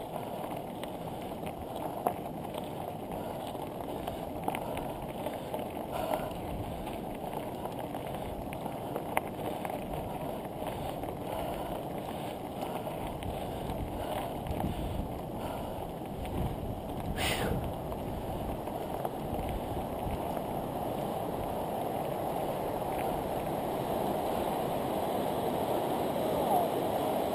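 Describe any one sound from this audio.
Bicycle tyres crunch and rattle over gravel.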